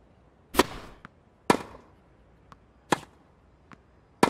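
A tennis ball bounces with a light thud on the court.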